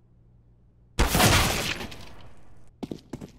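A grenade bursts with a loud bang.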